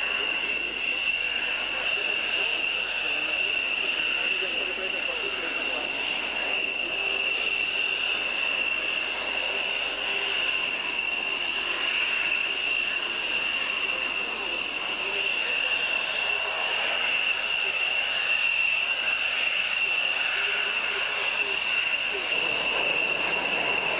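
Single-engine jet fighters taxi past with a high turbine whine.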